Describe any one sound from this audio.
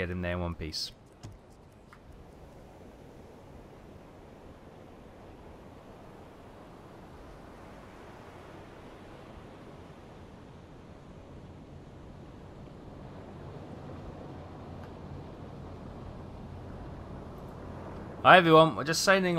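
Rough sea waves rush and splash against a submarine's hull.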